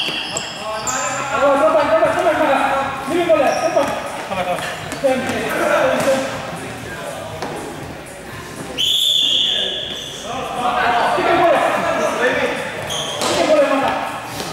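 Young men shout and call to each other in an echoing hall.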